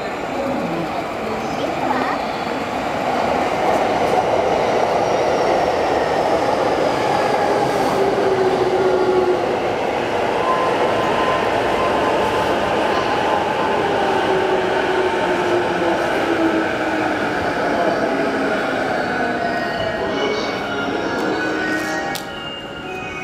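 A train rumbles past close by, its wheels rattling and clacking over the rails.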